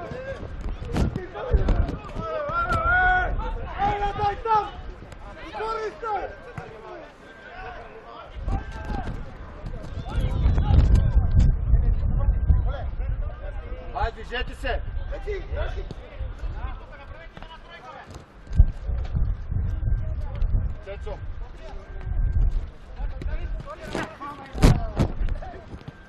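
Men shout to each other across an outdoor pitch.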